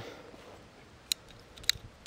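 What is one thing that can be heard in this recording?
Metal clicks as a pistol is handled.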